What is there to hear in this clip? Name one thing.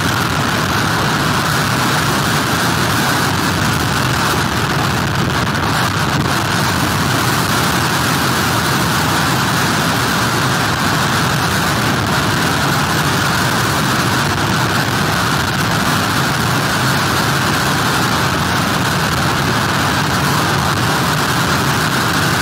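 Strong wind blows hard outdoors.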